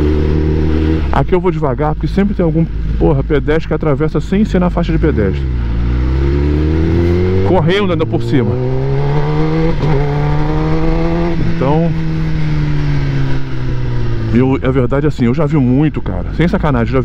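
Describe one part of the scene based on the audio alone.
A motorcycle engine revs up and down as the bike accelerates through gears.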